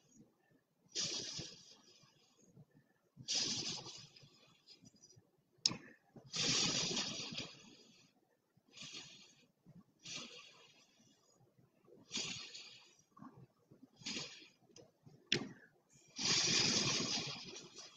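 A man blows hard through a straw in repeated short bursts of breath.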